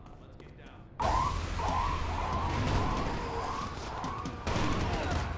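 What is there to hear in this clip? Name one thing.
Gunfire rattles in rapid bursts nearby.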